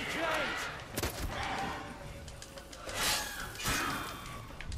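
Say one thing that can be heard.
A sword swishes and strikes.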